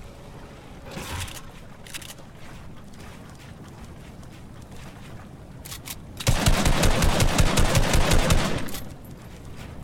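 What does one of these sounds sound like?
Wooden building pieces snap into place with quick knocks.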